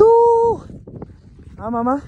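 Boots crunch on snow as climbers walk.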